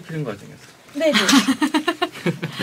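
A young woman laughs brightly into a close microphone.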